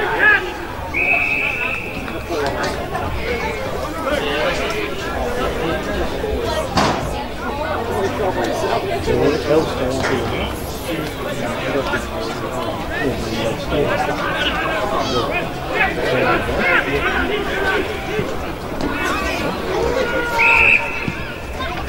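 A referee's whistle blows in short shrill blasts.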